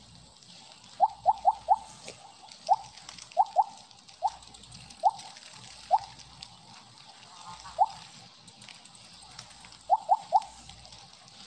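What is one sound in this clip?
Short high blips chime in quick bursts as a game snake eats.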